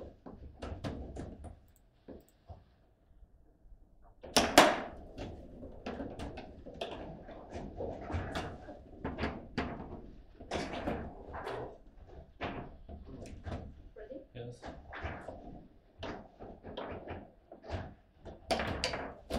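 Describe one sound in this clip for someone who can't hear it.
Metal rods slide and clack as players jerk them back and forth.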